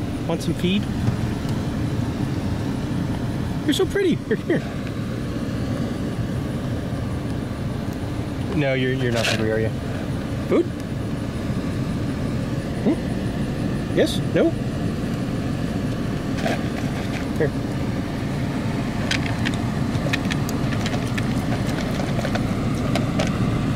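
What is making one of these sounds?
A car engine idles steadily.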